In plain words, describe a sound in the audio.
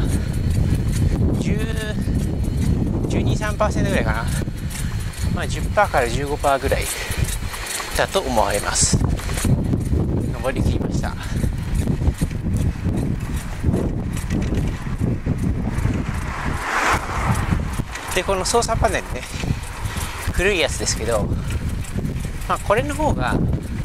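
Wind buffets a microphone steadily while riding outdoors.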